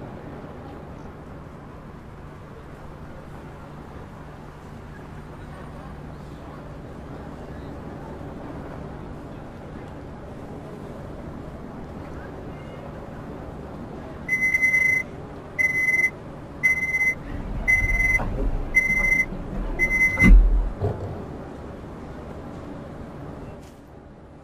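A train's motor hums steadily while it stands still.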